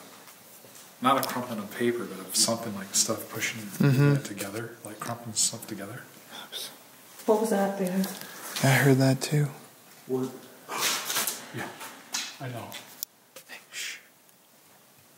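A middle-aged man speaks calmly and close by, explaining.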